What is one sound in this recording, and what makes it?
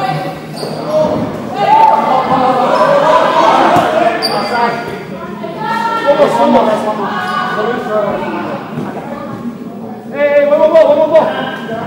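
A ball thuds on the floor and against hands.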